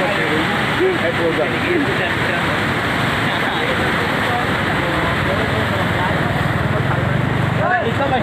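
Floodwater rushes and roars loudly nearby.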